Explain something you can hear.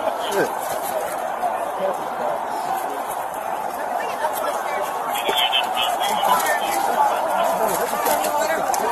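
A large crowd shouts and clamours outdoors.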